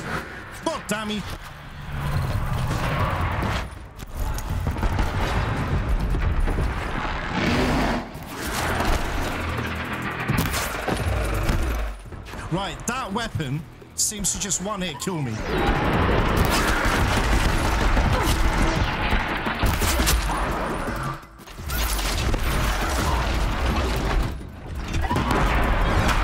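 Explosions boom with deep rumbling.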